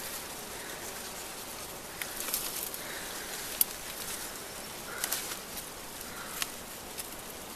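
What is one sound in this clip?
Leaves rustle as they are plucked from a bush.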